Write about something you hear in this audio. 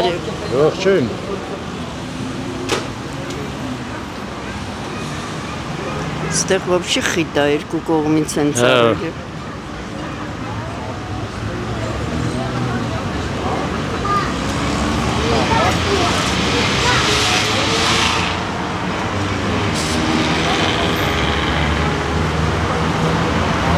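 People chatter in a low murmur nearby.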